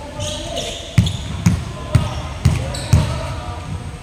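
A basketball bounces on a hard floor with loud thuds in a large echoing hall.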